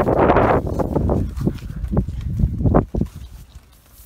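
Tent fabric rustles and crinkles loudly close by.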